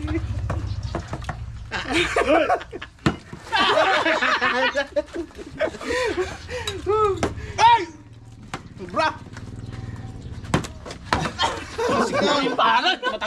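Several men talk and laugh loudly close by.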